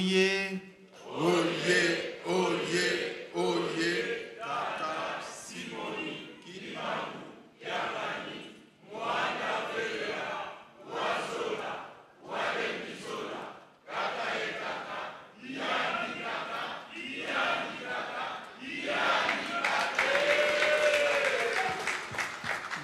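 An elderly woman speaks with emotion through a microphone in a large echoing hall.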